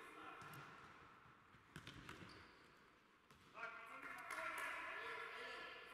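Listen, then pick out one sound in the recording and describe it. Sneakers squeak on the hard court floor.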